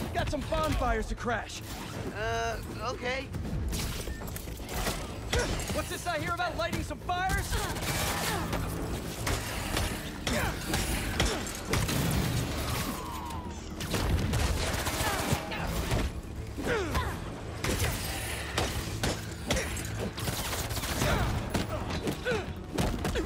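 Punches and kicks land with heavy, rapid thuds.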